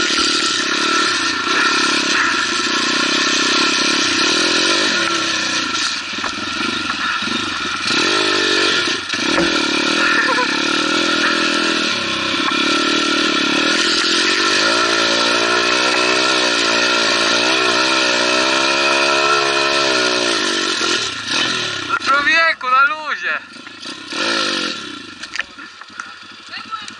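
A dirt bike engine revs loudly up and down, close by.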